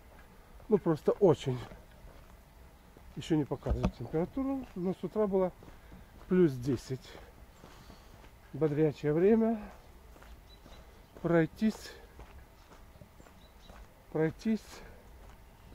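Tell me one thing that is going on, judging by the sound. An elderly man speaks calmly in short phrases close to the microphone.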